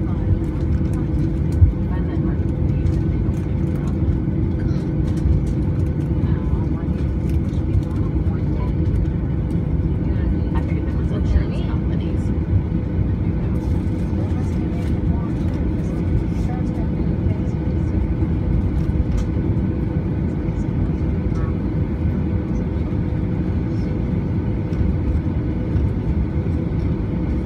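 Jet engines drone steadily from inside an aircraft cabin.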